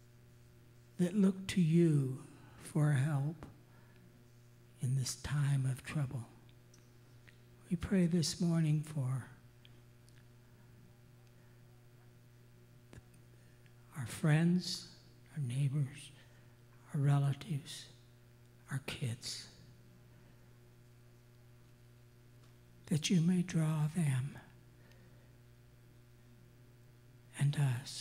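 An elderly man prays aloud in short, calm phrases through a microphone in an echoing hall.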